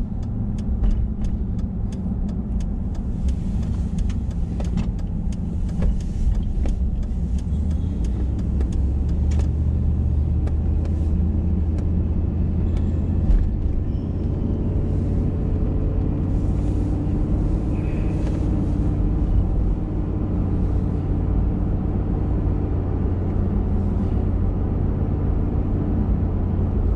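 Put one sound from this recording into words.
Tyres roll and rumble over the road.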